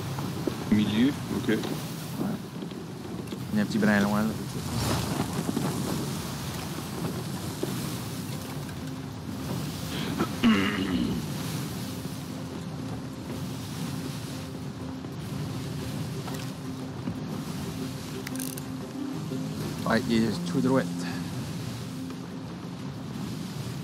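Stormy waves crash and roar against a ship's hull.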